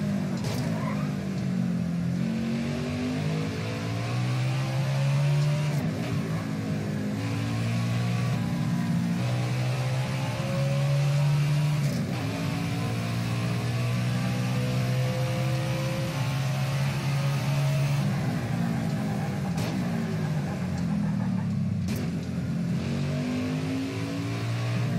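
A race car engine roars loudly, rising in pitch through the gears and dropping as it shifts and slows.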